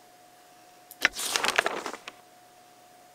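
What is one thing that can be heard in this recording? A game page flips with a rustling sweep.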